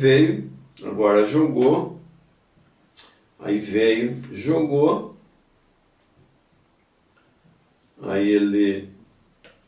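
An elderly man talks calmly and closely in bursts.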